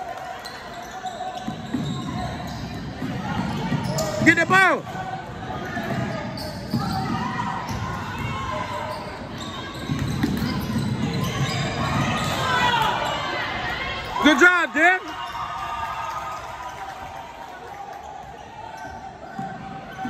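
Spectators talk and cheer in an echoing gym.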